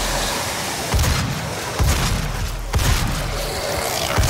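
A fiery explosion booms and crackles.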